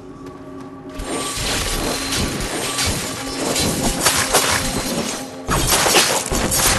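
A sword slashes and clashes loudly in a fight.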